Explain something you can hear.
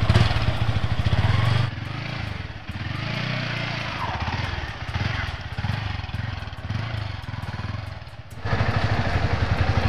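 A motorcycle rides away over a dirt path.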